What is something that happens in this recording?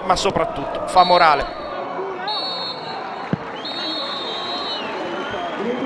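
A referee's whistle blows several sharp, long blasts.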